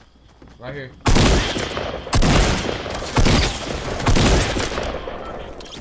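A shotgun fires several loud blasts in a game.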